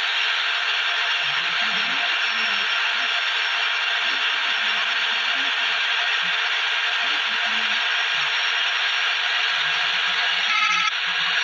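A bus engine hums steadily at high speed.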